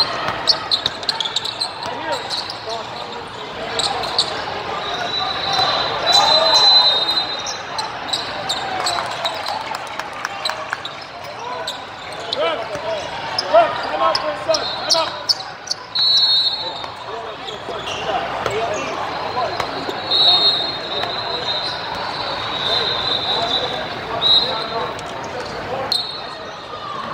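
Many young men and women chatter and call out across a large echoing hall.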